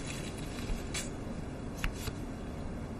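Paper cards rustle and tap in a man's hands.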